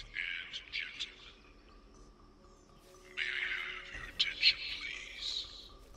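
A woman speaks calmly, heard through a loudspeaker.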